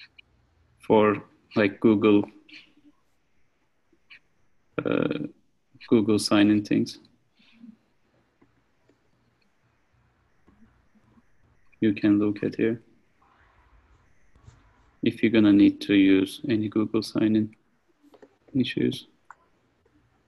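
A young man speaks calmly over an online call, in short bursts.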